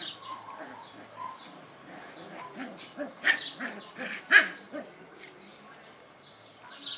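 Puppies yip, whine and growl as they play close by.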